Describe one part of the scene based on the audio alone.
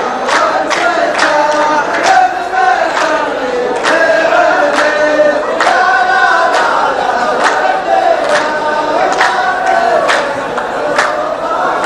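A group of men chant together.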